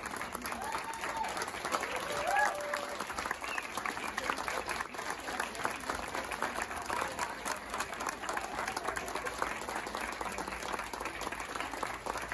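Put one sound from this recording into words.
An audience claps hands together.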